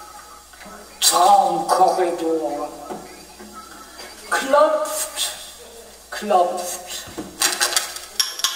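A man sings close to a microphone.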